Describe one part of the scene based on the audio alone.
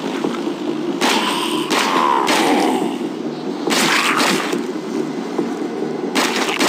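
Rifle shots crack in short bursts.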